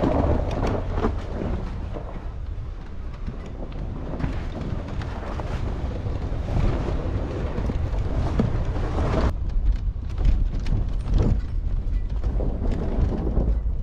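Tyres crunch and bump over a rough dirt track.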